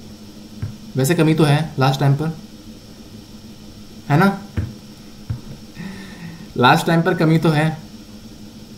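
A young man speaks calmly and close to a microphone, in short bursts.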